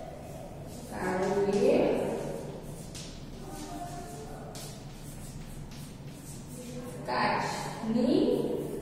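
A young woman speaks calmly, as if teaching.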